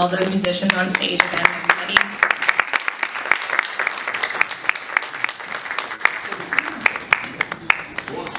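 An audience claps in applause.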